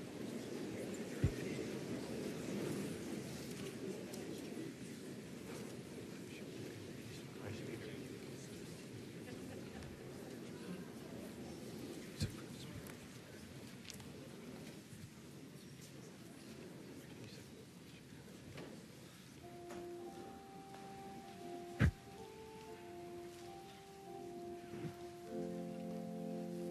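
People murmur softly in a large echoing hall.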